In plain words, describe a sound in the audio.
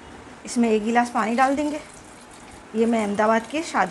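Water pours into a metal pot.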